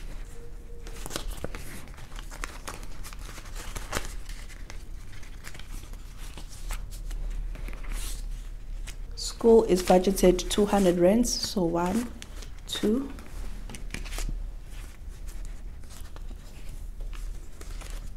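Plastic pouches crinkle and rustle.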